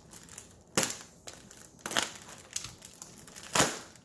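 A plastic knife clatters down onto a table.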